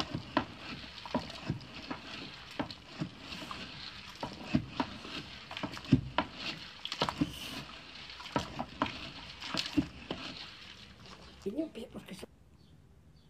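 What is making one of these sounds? Liquid bubbles and boils in a pot.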